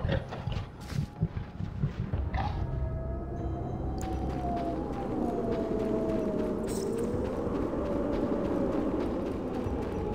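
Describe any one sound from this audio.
Footsteps echo on stone in a large vaulted hall.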